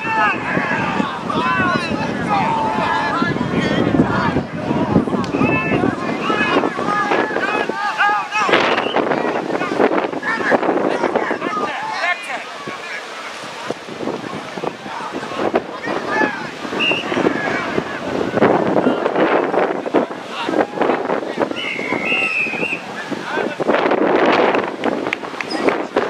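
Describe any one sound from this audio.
Young women players call out to each other across an open field.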